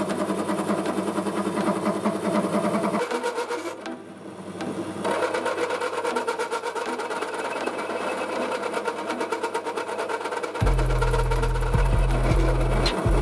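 A cutting tool scrapes and shaves metal.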